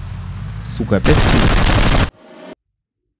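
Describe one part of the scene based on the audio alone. Guns fire rapidly.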